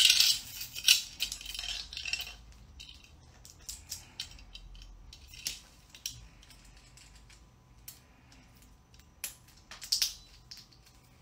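A metal chain jingles and rattles.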